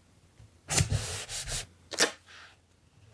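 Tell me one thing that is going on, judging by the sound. Paper rustles and scrapes as it is pressed down and smoothed by hand.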